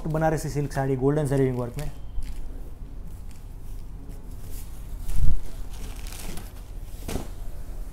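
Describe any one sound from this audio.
Silk fabric rustles as it is unfolded and handled.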